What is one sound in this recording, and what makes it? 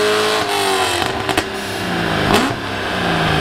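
A car exhaust pops and crackles sharply.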